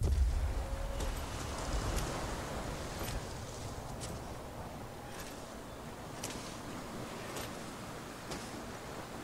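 Footsteps crunch slowly on sand.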